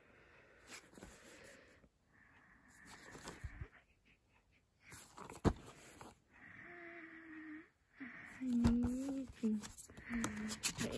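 A plastic disc case knocks and clatters in hands.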